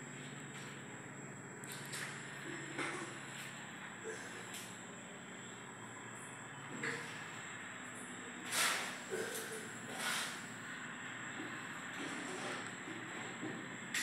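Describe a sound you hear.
A hand tool scrapes and knocks against a hard ceiling in short bursts.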